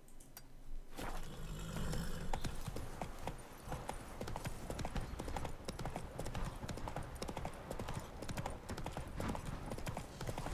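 A horse gallops, its hooves thudding steadily on soft ground.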